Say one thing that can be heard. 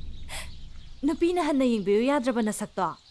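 A young woman speaks tearfully and pleadingly, close by.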